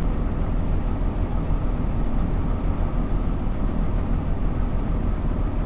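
A train engine hums and rumbles steadily.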